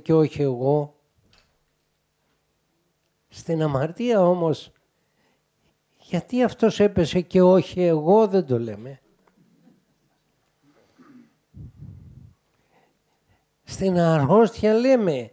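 An elderly man speaks with animation into a close microphone, with pauses.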